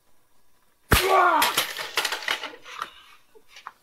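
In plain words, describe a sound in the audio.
A young man cries out in pain close by.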